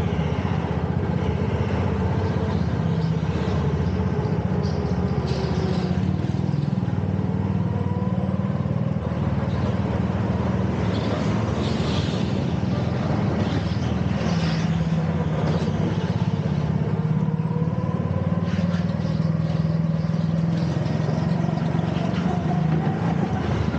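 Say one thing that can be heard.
A go-kart engine buzzes loudly up close, rising and falling in pitch as it speeds up and slows.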